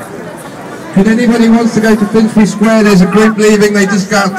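A crowd chants loudly together close by.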